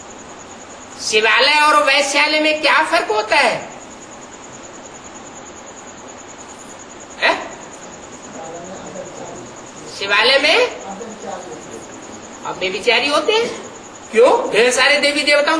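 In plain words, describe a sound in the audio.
An elderly man speaks with animation through a microphone over a steady hiss.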